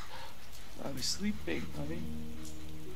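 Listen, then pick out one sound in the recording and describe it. A middle-aged man speaks softly and gently.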